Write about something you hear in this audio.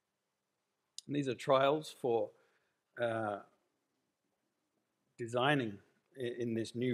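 A middle-aged man speaks calmly into a microphone, with pauses between phrases.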